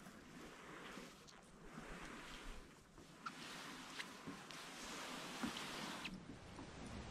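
A canoe scrapes as it is dragged across grass.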